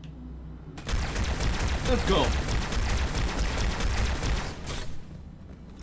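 A plasma gun fires in rapid bursts.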